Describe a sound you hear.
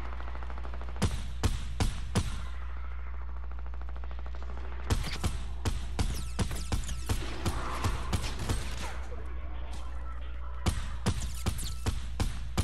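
A video game submachine gun fires in bursts of shots.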